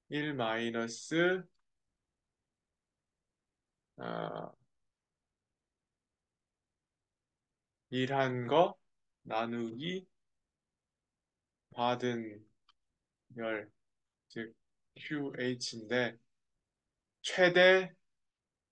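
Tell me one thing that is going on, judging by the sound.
A young man speaks calmly through a microphone, in short phrases with pauses.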